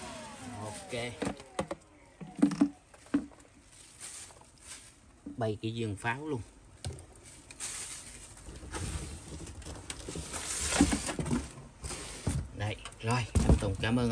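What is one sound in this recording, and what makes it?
Hard plastic parts knock and rattle as they are handled.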